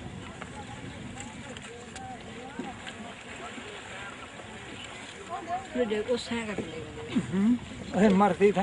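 Men talk and call out loudly outdoors.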